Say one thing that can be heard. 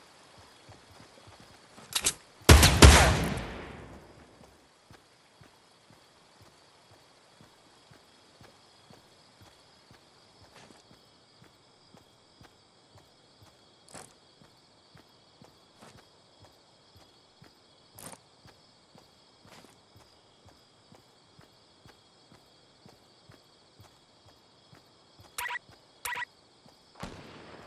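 Footsteps splash softly and steadily through shallow water.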